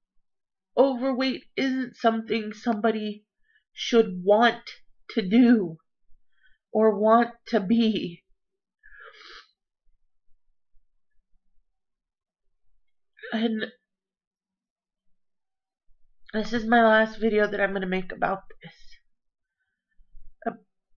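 A woman talks calmly and close to a microphone, with pauses.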